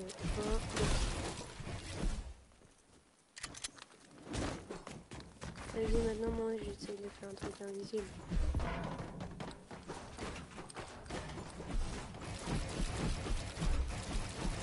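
Wooden building pieces snap into place in quick, clattering bursts.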